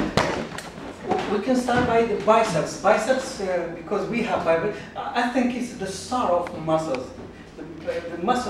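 A middle-aged man lectures with animation.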